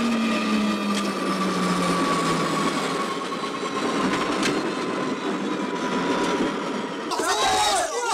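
A helicopter engine whirs as it hovers low.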